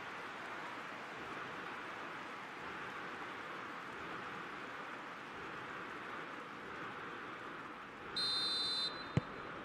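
A large crowd cheers and chants loudly in a stadium.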